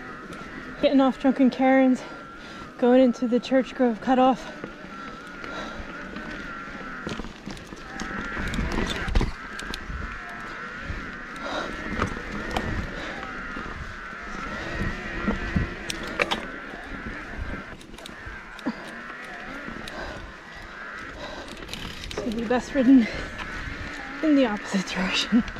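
A bicycle rattles over bumps on the trail.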